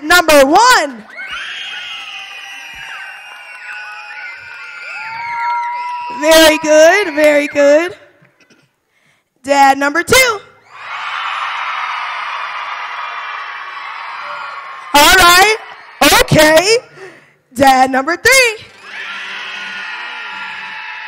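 A crowd cheers and screams.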